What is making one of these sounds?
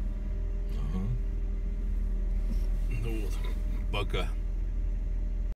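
A car engine idles with a steady low hum.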